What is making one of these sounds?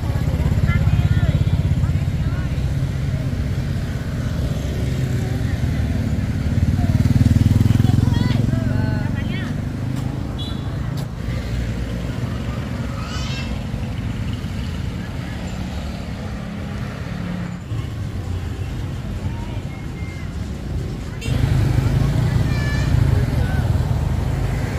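Motorbike engines hum as they ride past on a street.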